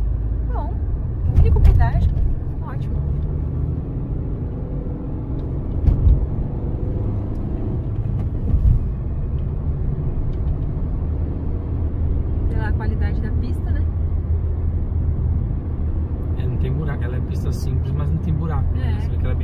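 A car's engine hums steadily from inside.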